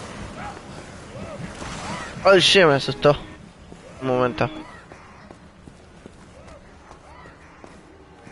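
Footsteps scrape on a stone floor.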